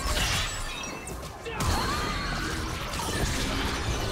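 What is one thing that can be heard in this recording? Spell effects whoosh and crackle in a game fight.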